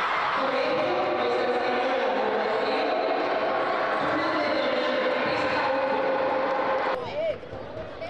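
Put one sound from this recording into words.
A crowd of children chants and cheers.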